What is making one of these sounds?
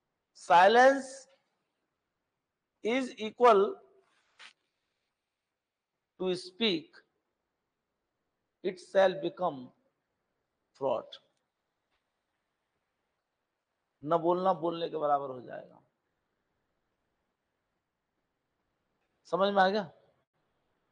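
A middle-aged man speaks in short bursts with pauses, close to a microphone.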